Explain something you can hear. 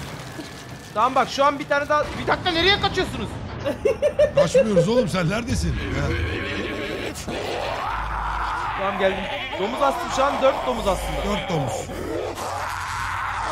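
Several young men talk and shout excitedly over headset microphones.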